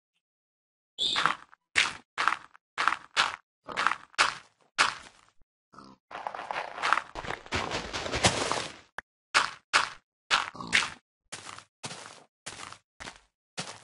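Blocks of dirt are set down with short, dull thuds.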